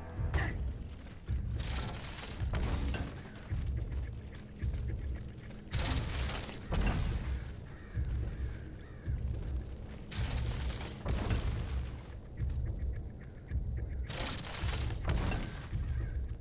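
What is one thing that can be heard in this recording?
Footsteps thud on wooden boards and stone.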